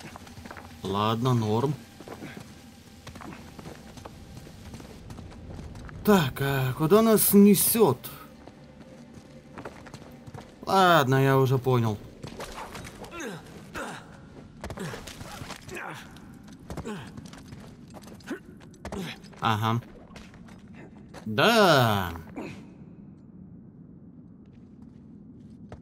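Footsteps scuff on stone.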